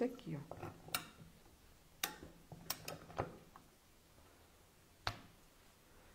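A hand press clicks as it snaps a metal fastener shut.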